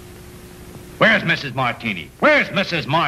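A man speaks loudly and with animation, close by, in a slightly muffled old recording.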